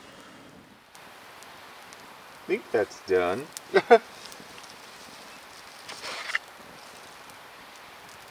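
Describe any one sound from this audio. Small flames crackle softly.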